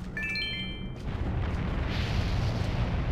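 A column of fire roars up loudly.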